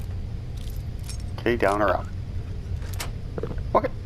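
A metal lock turns and clicks open.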